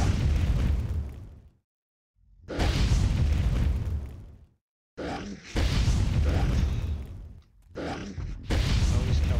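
Loud explosive blasts boom and roar in bursts.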